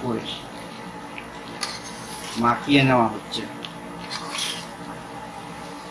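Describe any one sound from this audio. A spatula scrapes and stirs food in a metal pan.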